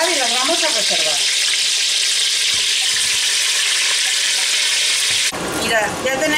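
Meat sizzles loudly in hot oil.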